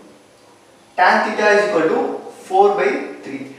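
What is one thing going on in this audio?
A young man speaks calmly and clearly, as if explaining.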